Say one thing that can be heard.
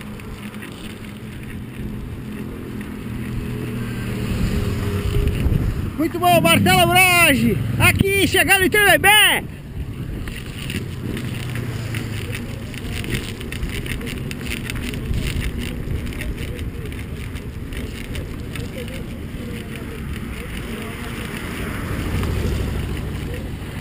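Bicycle tyres roll steadily over pavement.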